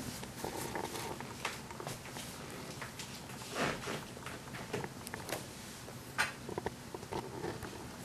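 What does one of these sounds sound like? A cat's paws pad and creak on a leather seat.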